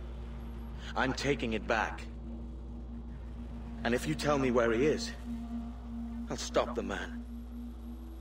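A man answers in a calm, firm voice.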